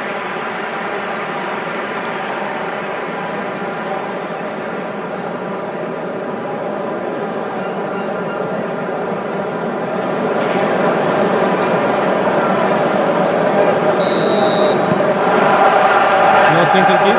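A large stadium crowd roars and chants steadily, growing louder.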